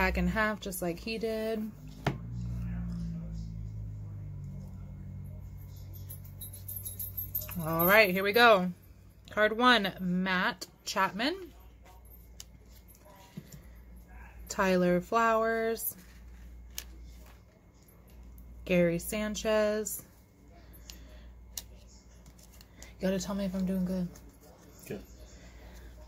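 Trading cards rustle and slide between fingers.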